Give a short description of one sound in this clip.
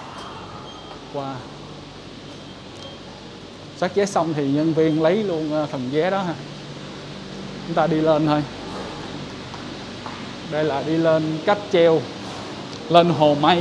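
Footsteps climb a stone staircase.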